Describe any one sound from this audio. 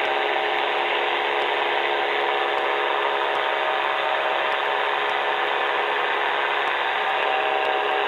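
A small aircraft engine drones loudly and steadily close by.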